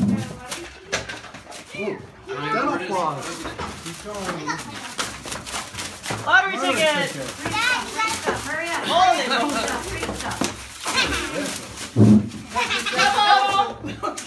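A group of men, women and children talk and shout excitedly close by.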